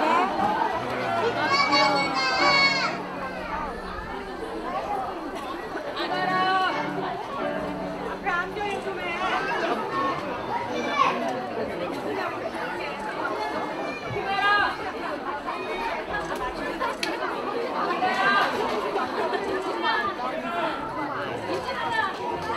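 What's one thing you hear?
A large crowd of adults and children chatters in an echoing hall.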